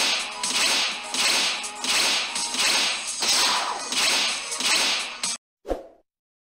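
Game cards flip over one after another with bright whooshing chimes.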